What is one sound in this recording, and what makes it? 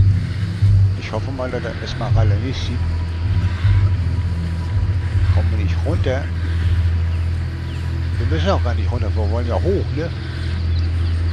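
Dry grass rustles as someone crawls through it.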